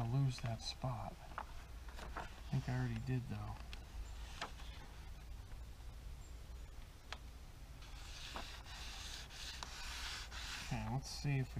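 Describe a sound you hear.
Paper rustles and scrapes as a hand rubs it flat.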